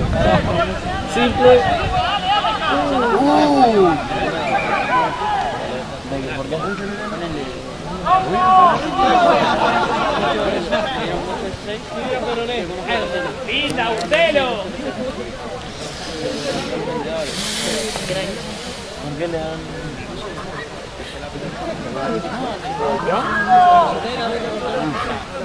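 Spectators along a sports field shout and cheer outdoors.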